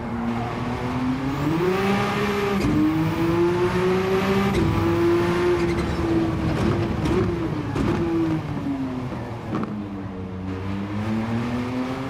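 A racing car engine roars loudly, rising and falling in pitch as the car shifts gears.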